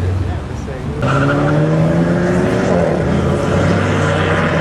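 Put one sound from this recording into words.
A car engine revs loudly close by.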